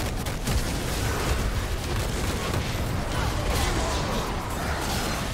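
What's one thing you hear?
Spell effects crackle and whoosh in a game fight.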